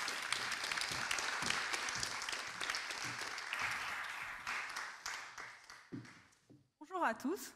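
An audience applauds in a large hall and the clapping fades out.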